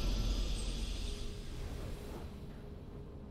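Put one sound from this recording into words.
A bright game victory fanfare sounds and fades.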